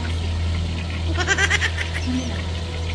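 A young woman laughs briefly, close by.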